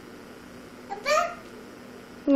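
A baby squeals nearby.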